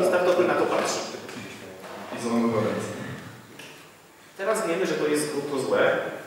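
A young man speaks into a microphone, presenting calmly in a room with some echo.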